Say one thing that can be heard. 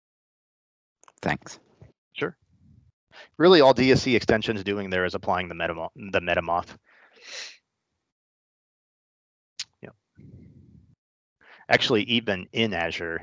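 A man talks over an online call.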